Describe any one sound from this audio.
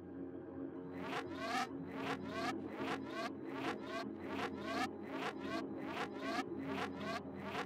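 A game menu plays a rising whooshing sound effect again and again, in quick succession.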